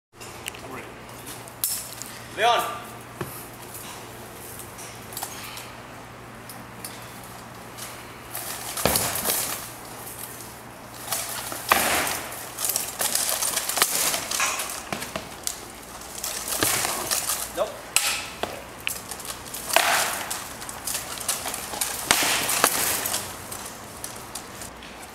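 Wooden weapons knock against shields and each other in sharp clacks.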